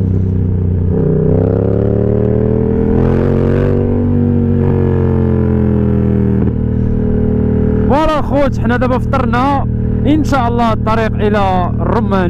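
Wind rushes past loudly as the motorcycle speeds along.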